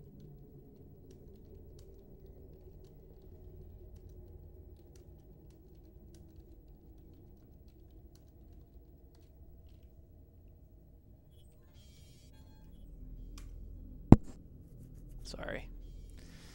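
A low rumbling drone hums steadily.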